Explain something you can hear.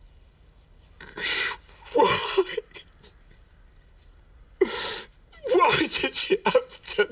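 An older man sobs.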